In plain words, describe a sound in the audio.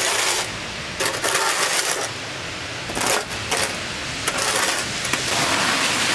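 A shovel scrapes across gritty ash on pavement.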